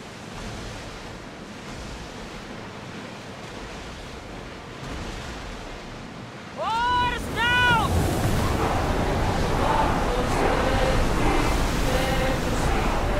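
Waves splash and rush against a ship's hull.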